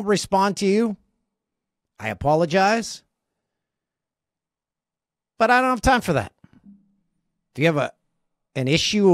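A middle-aged man speaks with animation, close to a microphone, in short bursts with pauses.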